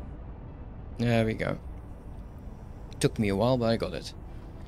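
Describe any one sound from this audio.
A young man speaks casually into a close microphone.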